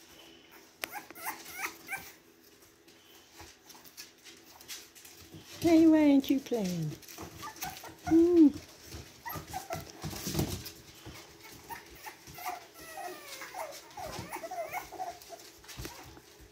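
Puppies whine and yelp in high voices.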